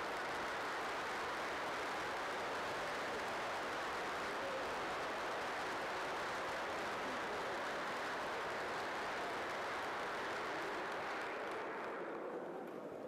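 A large crowd applauds steadily in a large echoing hall.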